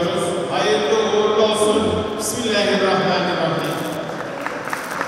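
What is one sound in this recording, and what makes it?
A man speaks into a microphone over loudspeakers.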